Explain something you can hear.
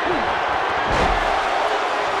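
A wrestler slams heavily onto the ring mat with a loud thud.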